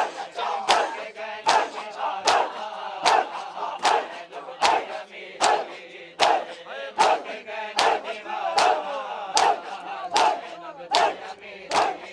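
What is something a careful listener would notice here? A large crowd of men beat their chests in a steady rhythm, with loud slaps every second or so.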